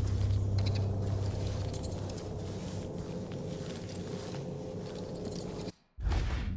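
Footsteps thud softly on wooden stairs.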